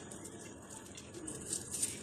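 Hands squish through food.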